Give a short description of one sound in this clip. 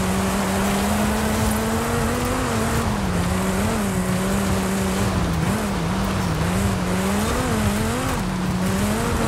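A sports car engine roars steadily at high revs, rising and dipping with gear changes.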